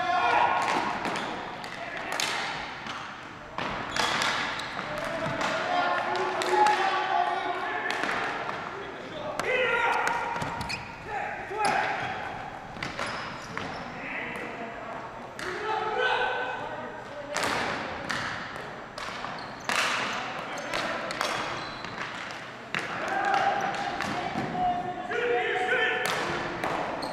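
Hockey sticks clack against a ball and against each other on a hard floor.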